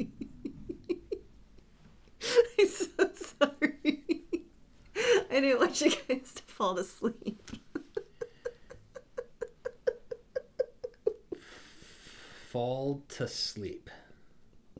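A young woman laughs loudly and helplessly close to a microphone.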